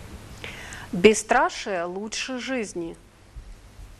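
A middle-aged woman speaks loudly with animation.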